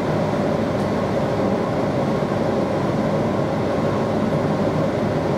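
An electric train rumbles along the track, heard from inside the carriage.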